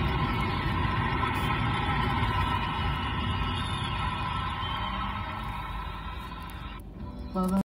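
A car engine hums steadily with road noise from a moving vehicle.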